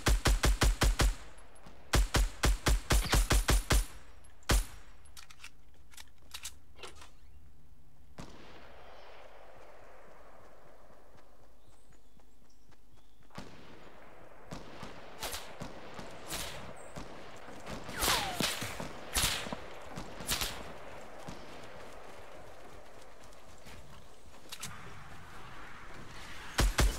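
Rapid gunshots fire in bursts in a video game.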